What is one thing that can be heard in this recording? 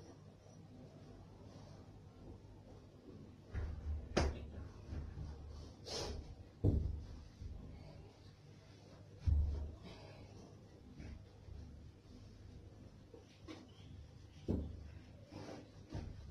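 Cloth rustles and flaps as someone handles towels.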